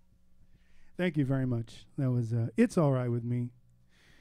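A saxophone plays a short phrase of held notes.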